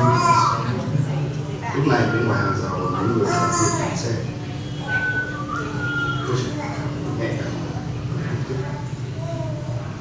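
Men and women voice sounds together.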